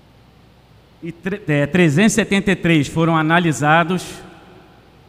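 A man speaks formally into a microphone.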